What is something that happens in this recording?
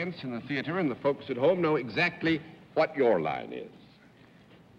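A middle-aged man speaks with animation into a microphone, heard through an old broadcast recording.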